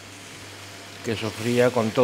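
A wooden spoon scrapes and stirs vegetables in a pan.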